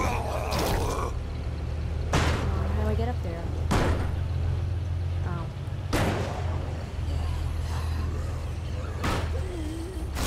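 A truck bangs and thuds over rough ground.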